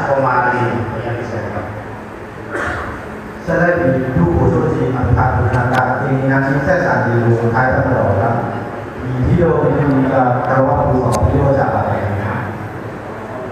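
A man speaks loudly through a loudspeaker in an echoing hall.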